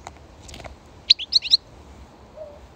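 A small bird chirps close by in sharp, quick bursts.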